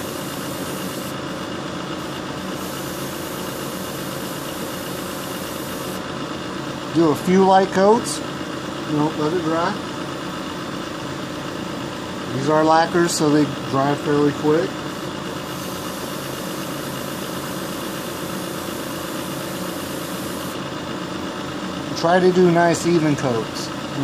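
An airbrush hisses as it sprays.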